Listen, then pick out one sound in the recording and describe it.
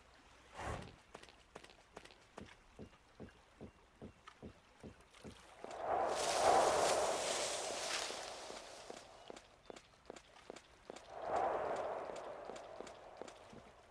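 Footsteps tread at a steady walking pace.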